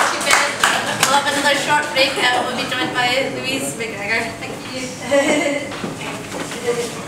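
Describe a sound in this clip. A woman speaks calmly in a room.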